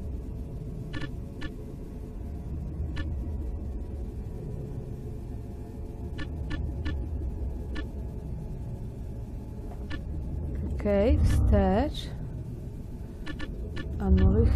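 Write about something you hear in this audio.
Soft interface clicks sound now and then.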